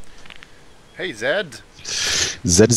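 A man speaks in a low, gruff voice close by.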